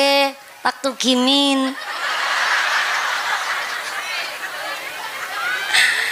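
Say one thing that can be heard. A woman speaks with animation through a microphone and loudspeakers.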